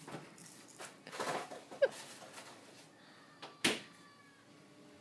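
A kitten scuffles and rolls about on a carpet with a toy, with soft rustling and thumps.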